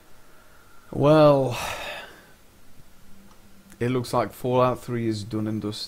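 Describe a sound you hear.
A man speaks close to a headset microphone.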